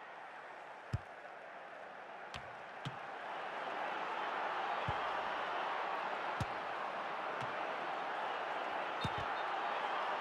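A football is kicked with dull thuds now and then.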